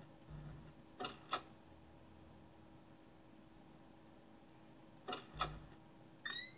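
Sharp electronic clicks from a computer game play through a loudspeaker.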